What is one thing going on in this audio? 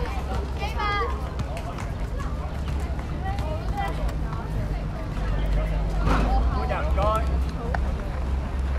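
Young women shout and call out across an open court.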